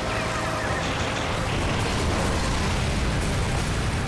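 A giant robot fires a rapid stream of shots.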